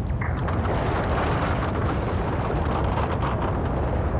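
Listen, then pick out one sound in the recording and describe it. Rubble clatters and tumbles.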